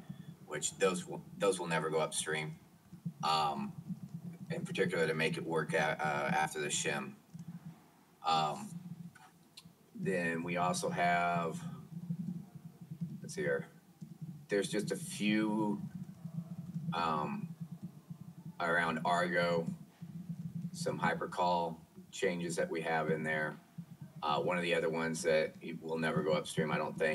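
A man talks calmly through a microphone, with pauses.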